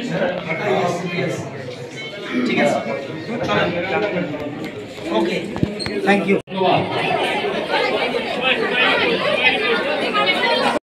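Several men talk at once nearby, in a small echoing room.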